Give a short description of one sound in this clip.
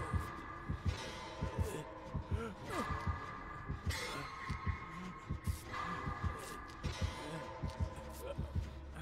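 Heavy footsteps thud at a steady pace.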